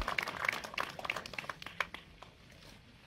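A crowd claps and applauds outdoors.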